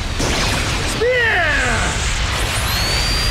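A young boy shouts loudly.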